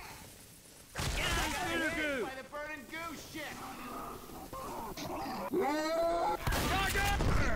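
A shotgun fires loudly with a booming blast.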